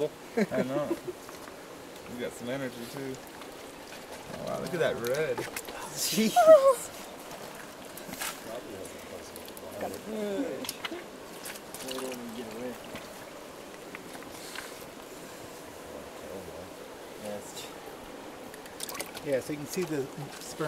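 Water sloshes and splashes in a bucket.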